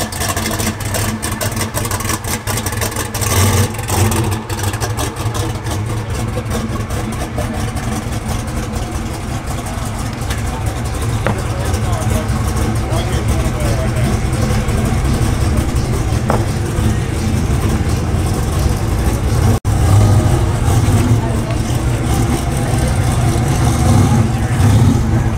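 A powerful car engine idles with a deep, throbbing rumble close by.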